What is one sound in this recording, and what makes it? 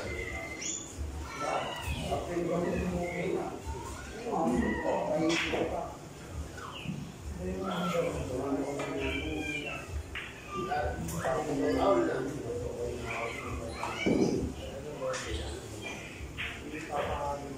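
Several men talk casually nearby.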